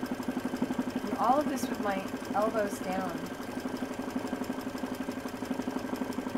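An embroidery machine hums and taps rapidly and steadily as its needle stitches.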